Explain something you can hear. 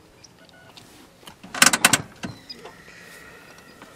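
A gear lever clicks and clunks inside a car.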